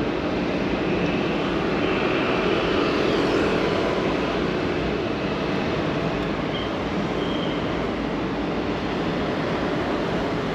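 City traffic rumbles steadily nearby.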